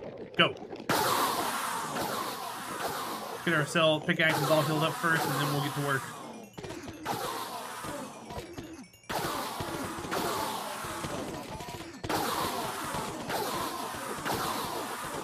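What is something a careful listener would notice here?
Loud crackling game combat noises burst out repeatedly.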